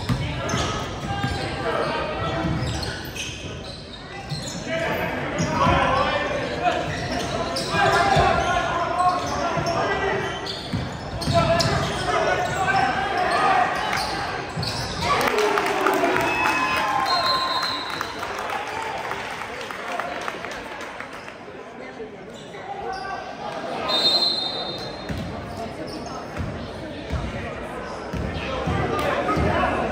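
A crowd of spectators cheers and chatters in a large echoing gym.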